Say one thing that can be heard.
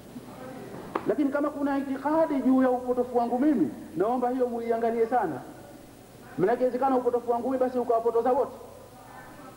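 A man sings loudly nearby in long, held phrases.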